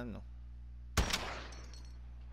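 A rifle fires a single loud, sharp shot.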